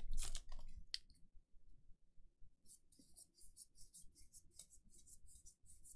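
Cards rustle and flick as they are shuffled through.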